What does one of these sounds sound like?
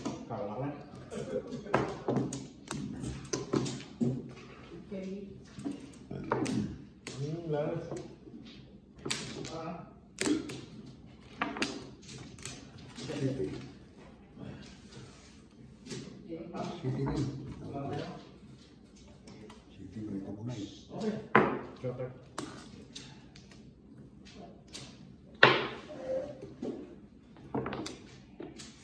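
Mahjong tiles clack against each other and tap on a table.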